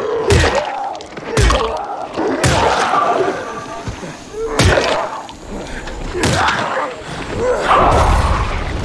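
A weapon strikes flesh with heavy, wet thuds.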